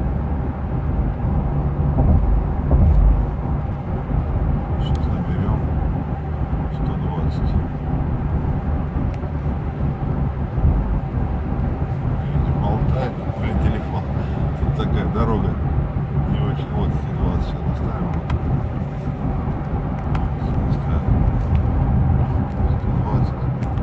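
Tyres rumble low on the road.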